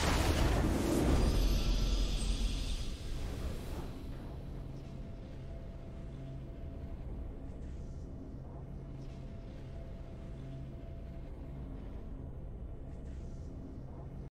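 A triumphant victory fanfare plays and then settles into quiet music.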